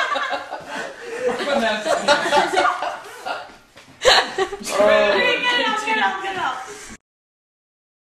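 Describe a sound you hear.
A young woman talks and laughs with animation close by.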